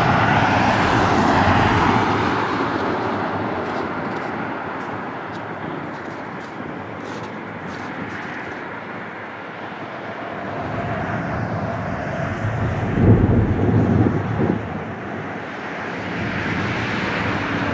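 A jet airliner roars overhead as it descends to land.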